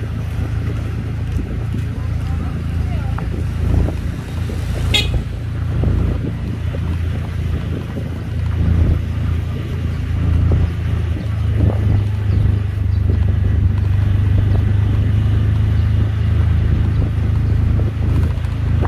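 Motorcycles ride along a street in the distance.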